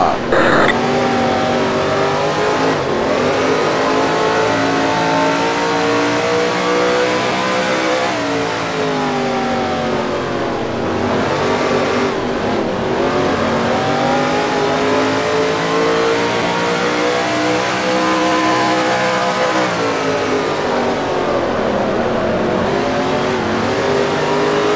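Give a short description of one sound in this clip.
A race car engine roars at high revs, its pitch rising and falling through the turns.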